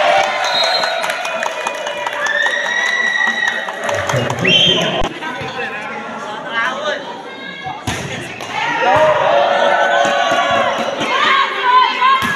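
A crowd of young women and men cheers and shouts in a large echoing hall.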